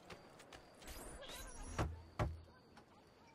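A man knocks on a wooden door.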